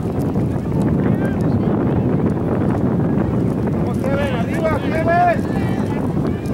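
Young players shout out on a field outdoors.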